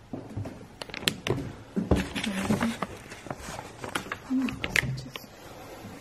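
Paper rustles as an envelope is handled.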